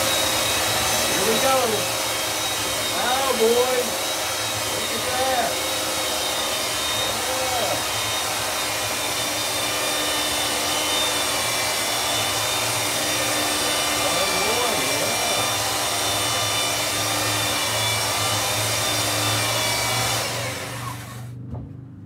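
A power sander whirs steadily and loudly.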